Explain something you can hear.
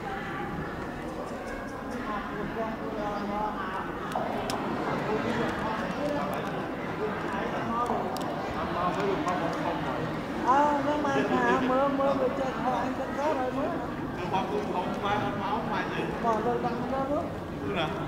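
A man chants steadily nearby.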